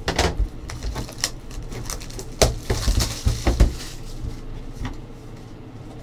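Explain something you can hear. Plastic wrapping crackles as it is torn off a box.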